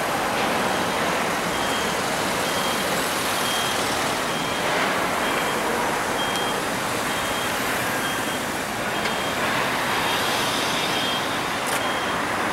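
A car drives past on a wet road.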